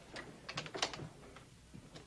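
A door rattles and knocks.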